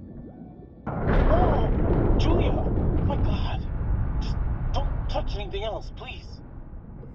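Another young woman speaks anxiously through a diving mask.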